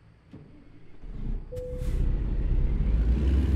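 A truck engine starts and idles with a deep rumble.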